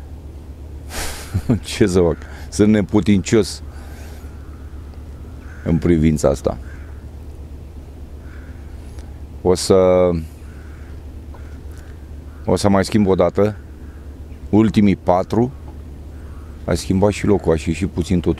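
A middle-aged man speaks calmly into a close clip-on microphone.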